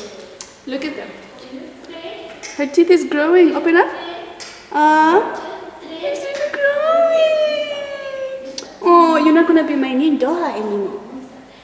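A woman talks playfully close by.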